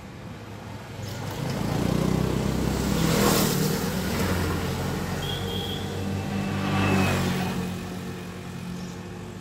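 A motor scooter rides past close by, its engine rising and fading.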